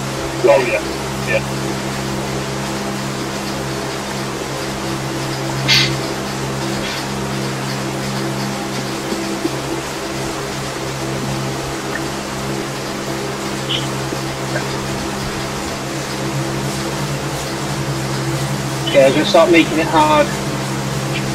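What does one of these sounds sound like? A man speaks briefly and casually into a nearby microphone.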